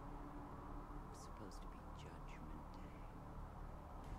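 A young person speaks softly and close into a headset microphone.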